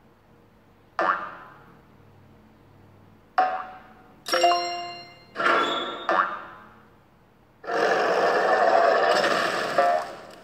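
Short bouncy electronic game sound effects play in bursts.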